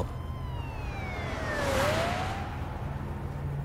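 A car rushes past with a whoosh.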